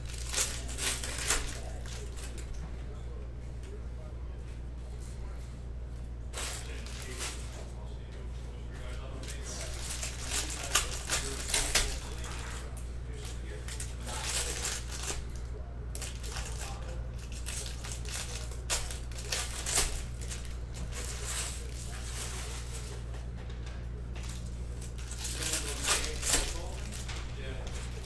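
Foil wrappers crinkle and tear in someone's hands.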